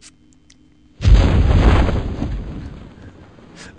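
Parachutes burst open with a loud rushing whoosh that slowly fades.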